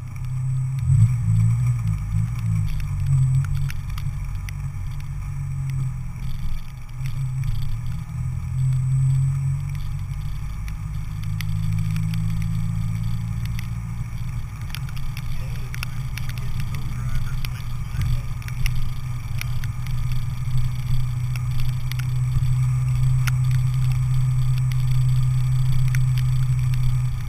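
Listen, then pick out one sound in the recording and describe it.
A car engine hums low and steady, revving up and down.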